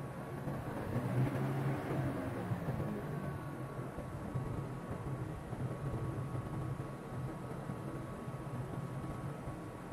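Jet engines whine and roar steadily as an airliner taxis.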